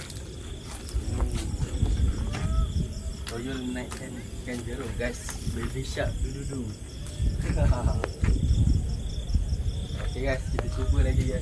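A large fish flops and slaps against the ground.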